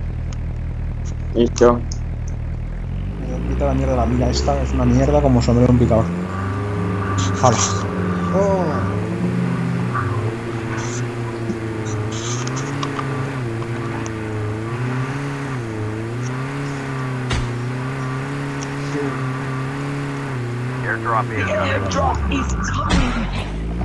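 A vehicle engine hums and revs as it drives along.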